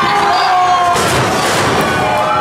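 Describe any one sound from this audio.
A body slams onto a wrestling mat with a thud.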